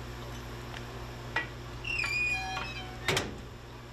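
A wood fire crackles in a stove.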